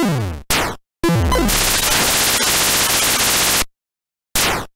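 A harsh electronic crackle buzzes steadily for a couple of seconds, then cuts off.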